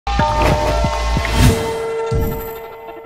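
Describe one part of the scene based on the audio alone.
A whoosh sweeps past.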